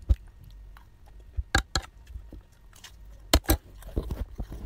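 A fork scrapes and clinks against a plate.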